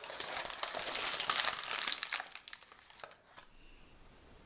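Parchment paper rustles and crinkles under hands.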